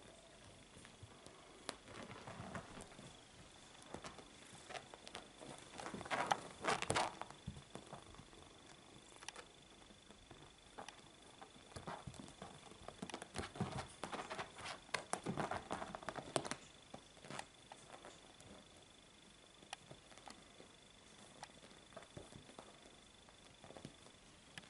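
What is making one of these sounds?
A kitten scrabbles and rustles against cushions and sofa fabric.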